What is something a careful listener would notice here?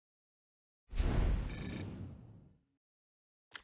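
A game interface plays a deep booming whoosh.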